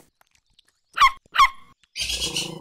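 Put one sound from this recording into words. A small dog yelps sharply twice.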